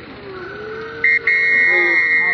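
A referee's whistle blows.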